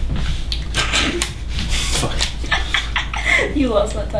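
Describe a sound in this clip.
A young woman laughs softly up close.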